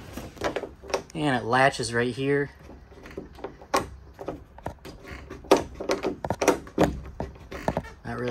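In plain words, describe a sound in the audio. A metal latch bolt slides and clicks.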